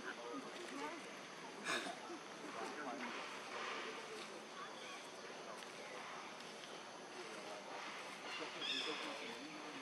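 A young monkey rustles and scratches at dry leaves on the ground.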